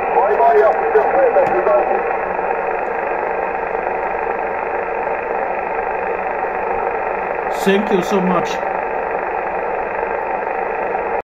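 Static hisses steadily from a radio receiver's loudspeaker.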